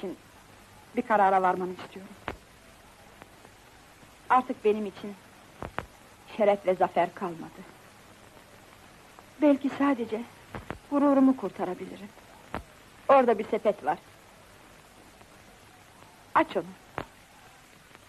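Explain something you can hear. A woman answers in a calm, low voice nearby.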